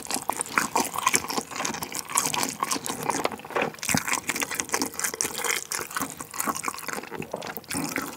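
Chopsticks clink against a bowl.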